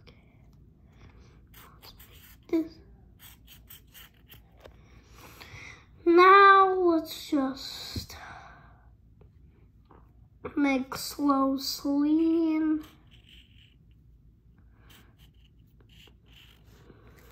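A felt-tip marker squeaks softly as it draws on a paper towel.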